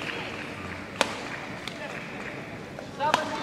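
A badminton racket strikes a shuttlecock with a sharp crack.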